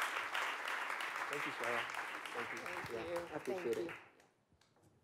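An audience applauds in a large room, then the applause dies away.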